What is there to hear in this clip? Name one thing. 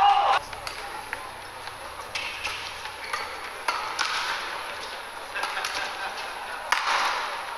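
Shoes squeak sharply on a court floor.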